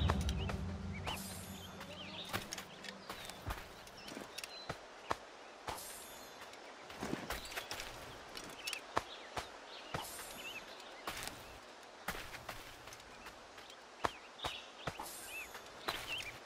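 Cloth rustles as bodies are searched.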